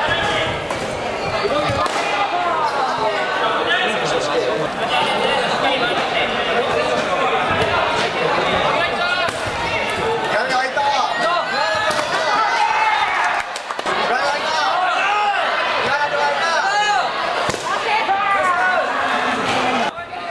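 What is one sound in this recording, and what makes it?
A crowd of young people chatters and cheers throughout a large echoing hall.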